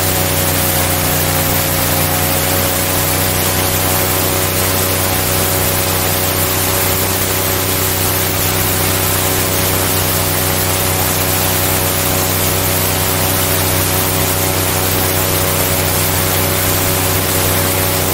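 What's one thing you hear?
An airboat's propeller engine roars loudly and steadily.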